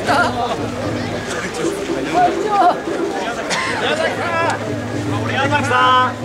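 A crowd of men and women chatter and call out loudly outdoors.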